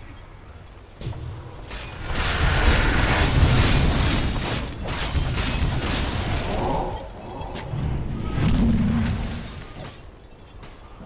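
Game combat sounds clash and burst with magical effects.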